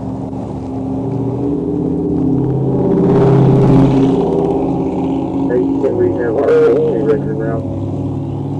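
A man talks outside a car, muffled through the window.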